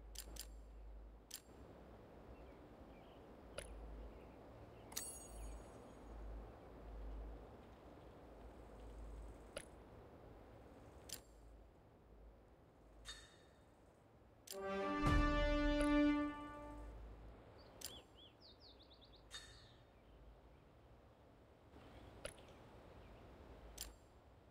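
Short interface clicks and taps sound now and then.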